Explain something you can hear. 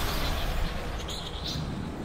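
A magic blast whooshes from a hand.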